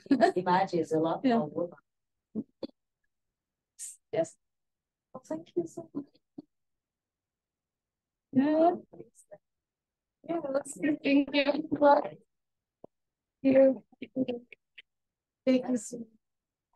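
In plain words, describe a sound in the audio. A woman reads out into a microphone, with pauses between phrases.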